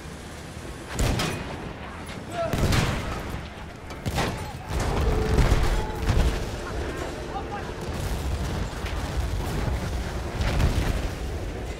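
Explosions boom and crack nearby.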